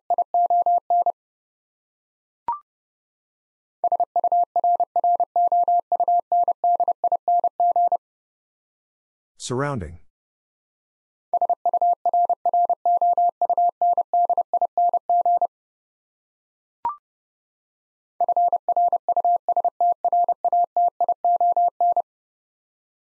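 A Morse code key beeps out a steady tone in quick dots and dashes.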